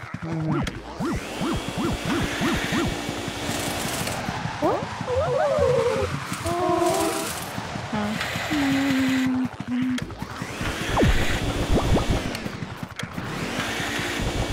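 A vacuum sucks air with a steady rushing roar.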